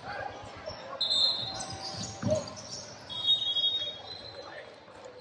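Sneakers squeak sharply on a wooden court in a large echoing hall.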